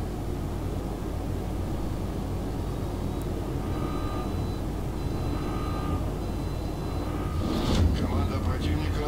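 A ship's engine rumbles low and steadily.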